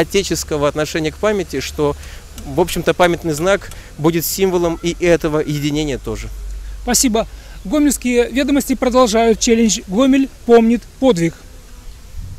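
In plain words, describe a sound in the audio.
An elderly man talks with animation close by, outdoors.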